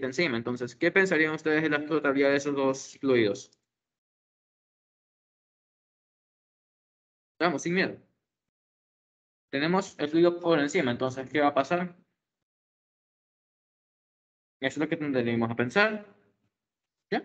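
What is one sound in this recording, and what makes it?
A man speaks calmly through an online call microphone, in bursts with pauses.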